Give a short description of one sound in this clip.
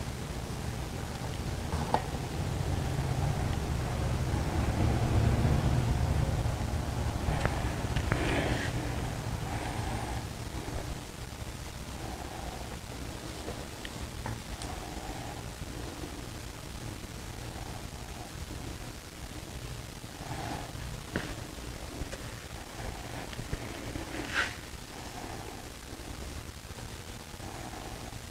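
Thick liquid pours and trickles softly from a plastic jug.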